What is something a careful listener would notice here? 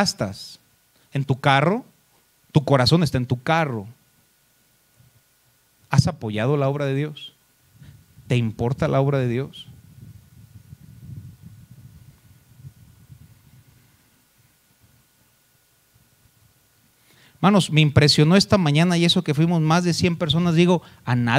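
A man speaks with emphasis into a microphone, echoing slightly in a hall.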